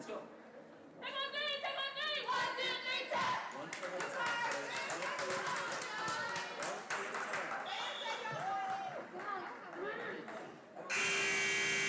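Young women cheer and shout together in an echoing gym.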